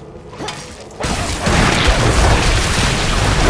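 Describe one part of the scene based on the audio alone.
Spells burst and clash in a fight.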